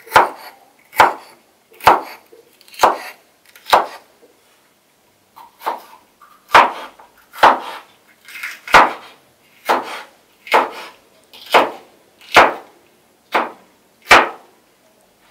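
A knife chops through green peppers onto a wooden cutting board.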